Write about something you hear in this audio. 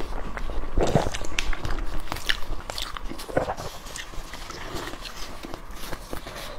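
Food crackles and rustles in gloved hands.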